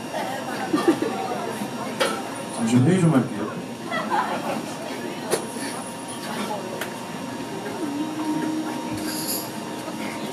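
A drummer strikes a cymbal.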